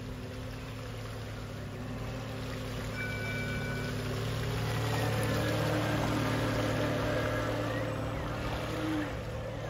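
Water hisses and splashes under a small speedboat hull.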